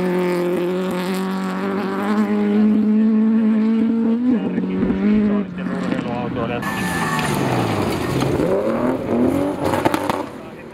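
A rally car engine roars loudly, its pitch rising and falling as it revs through the gears.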